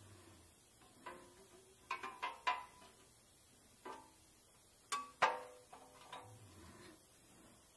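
Thin metal parts clank and click as they are fitted together by hand.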